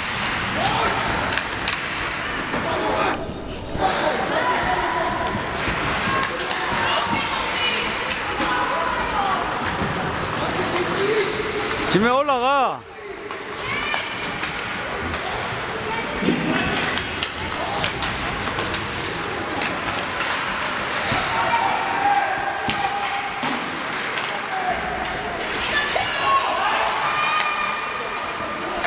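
Skates scrape and swish across ice.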